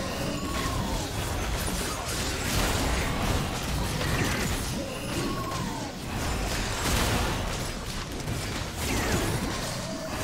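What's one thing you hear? Spell effects whoosh and crackle in a fast video game battle.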